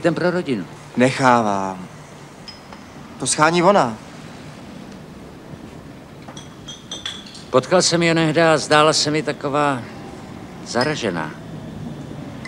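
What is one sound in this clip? A middle-aged man speaks calmly and up close, in short phrases.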